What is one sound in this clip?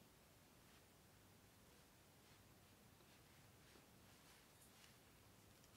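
A brush brushes softly across paper.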